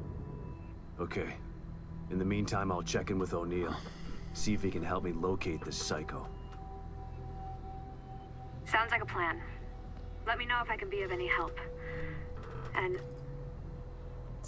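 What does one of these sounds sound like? A man speaks calmly into a phone.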